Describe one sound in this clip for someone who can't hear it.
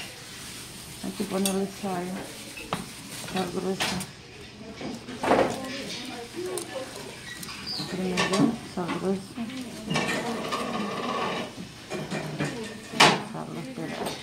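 Cucumber pieces squelch and rustle as a hand tosses them in a bowl.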